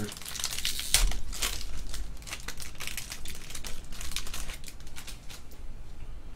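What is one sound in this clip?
A foil wrapper crinkles as it is torn open.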